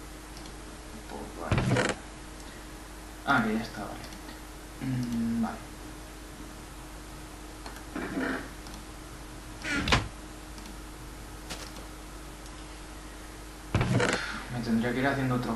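A wooden chest creaks open and shut.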